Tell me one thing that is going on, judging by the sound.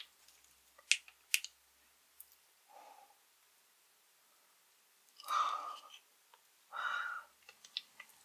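Gel squelches softly as it is squeezed out of a tube.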